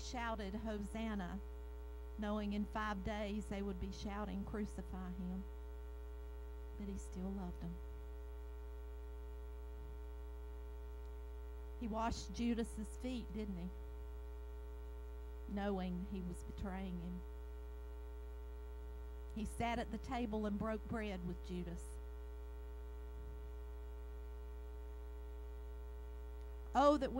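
A woman speaks slowly and expressively into a microphone through loudspeakers, with pauses between phrases.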